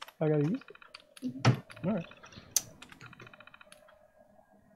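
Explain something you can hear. A computer terminal chirps in quick beeps as text prints out.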